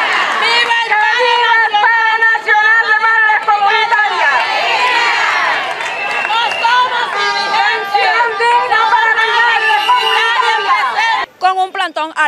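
A crowd of women chants loudly outdoors.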